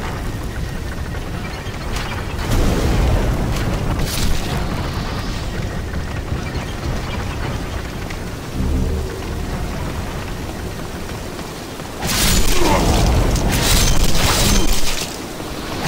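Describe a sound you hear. Fire bursts with a crackling whoosh.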